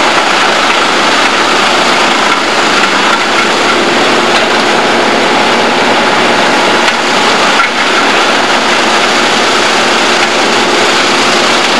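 Branches crack and rustle as a machine drags a felled tree.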